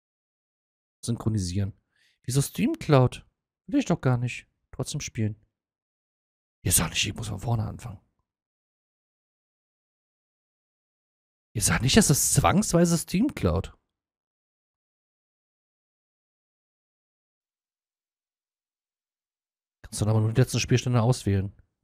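A man speaks calmly and close into a microphone, in short bursts with pauses.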